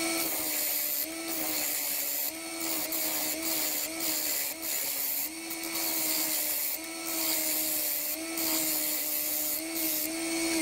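A lathe hums steadily.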